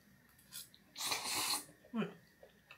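A young woman slurps noodles loudly.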